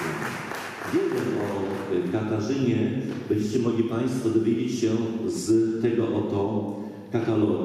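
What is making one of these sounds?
An elderly man speaks calmly into a microphone in an echoing hall.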